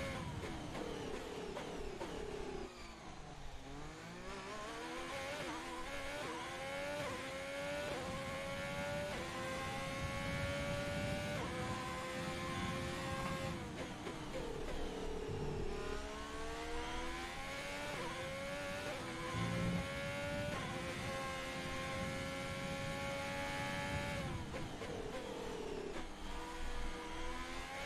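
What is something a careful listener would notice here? A racing car engine roars, rising in pitch and dropping sharply with each gear change.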